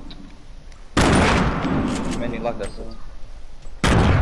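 A loud blast booms and rumbles away.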